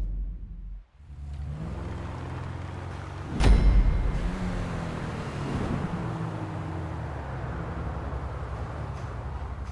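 A car engine idles.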